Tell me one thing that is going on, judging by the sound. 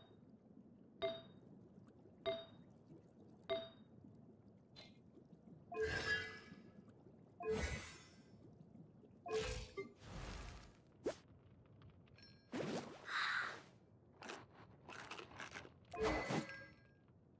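Short electronic chimes sound as menu options are clicked.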